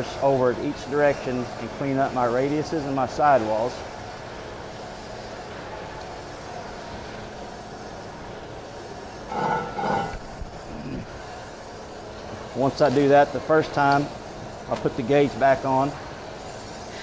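A middle-aged man speaks calmly and clearly, close by.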